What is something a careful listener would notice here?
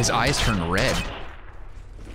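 Gunshots ring out in a quick burst.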